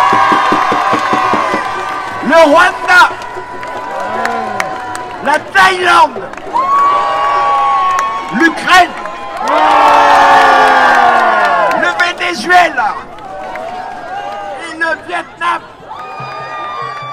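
A large crowd of men and women sings and cheers loudly outdoors.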